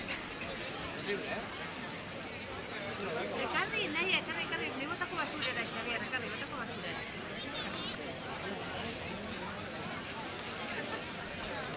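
A crowd of men, women and children chatters nearby outdoors.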